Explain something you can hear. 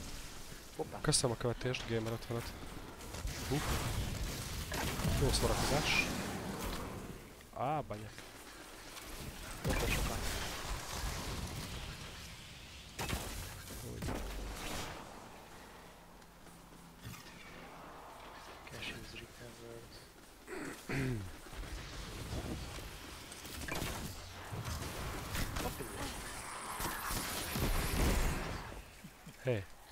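Gunshots and blasts crack and boom.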